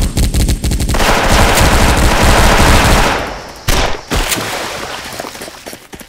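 A toy water gun sprays in rapid bursts.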